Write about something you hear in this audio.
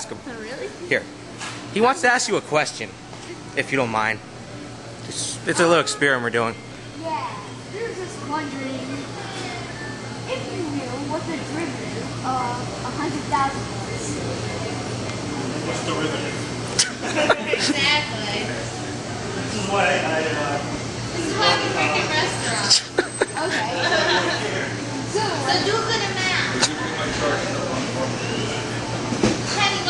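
Many people chatter in the background indoors.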